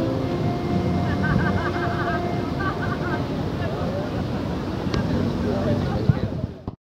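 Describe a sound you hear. A steel handpan rings with soft, warm tones.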